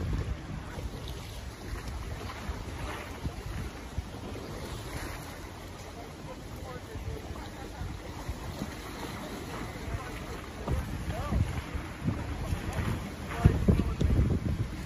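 Wind gusts across open water, rumbling in bursts.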